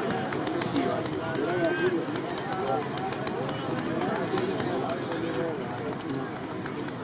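A crowd of men shout and cheer outdoors.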